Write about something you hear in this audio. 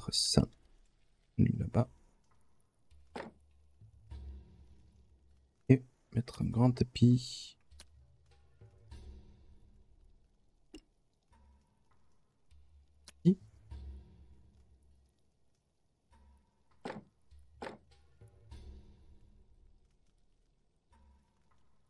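Short game interface clicks and soft placement thuds sound now and then.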